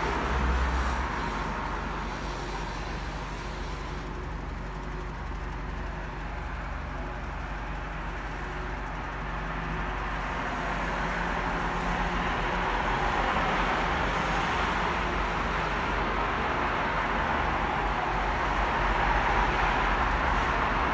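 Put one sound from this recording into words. A train engine rumbles steadily nearby.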